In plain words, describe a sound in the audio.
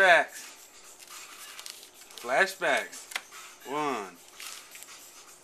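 Foil card packs rustle and crinkle as hands shuffle through them.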